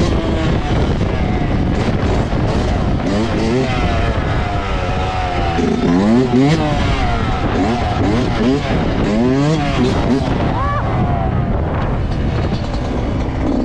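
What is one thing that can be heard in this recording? A motorcycle engine revs up and down loudly, close by.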